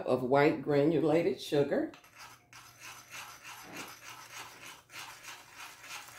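Sugar pours into a metal pot.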